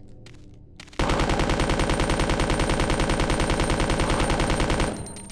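Rapid gunfire rattles loudly and steadily.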